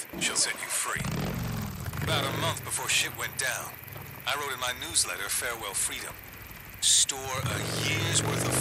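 A motorcycle engine starts up and revs as the bike rides off.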